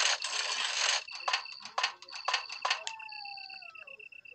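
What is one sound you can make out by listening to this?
Short electronic beeps and clicks sound from a game menu.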